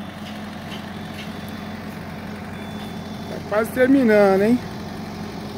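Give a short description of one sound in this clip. An excavator engine hums steadily nearby.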